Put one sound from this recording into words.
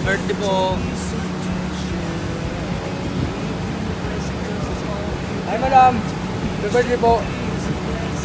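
Machinery hums steadily in the background.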